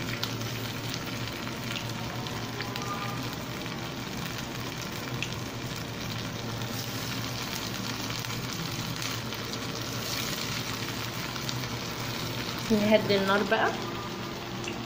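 Oil sizzles and crackles steadily as food fries in a pan.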